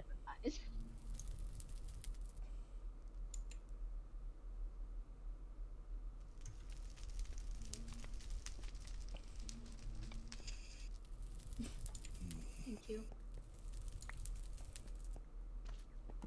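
Fire crackles softly.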